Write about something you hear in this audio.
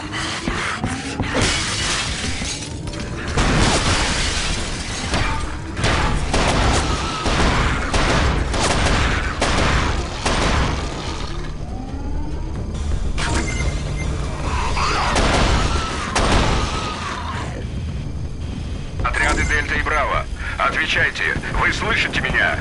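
A shotgun fires in loud blasts.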